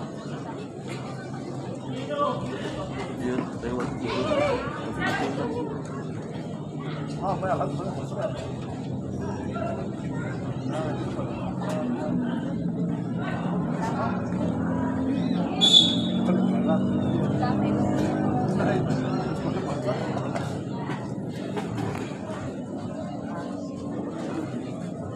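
A crowd of spectators chatters and murmurs outdoors.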